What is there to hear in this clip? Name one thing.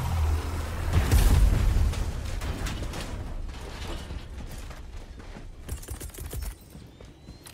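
A huge explosion booms and slowly rumbles away.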